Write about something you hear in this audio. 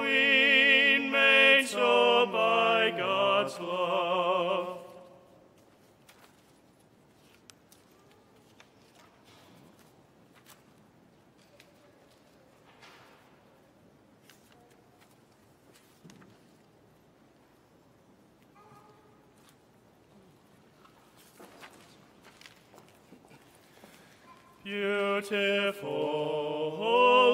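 A congregation chants together in a large echoing hall.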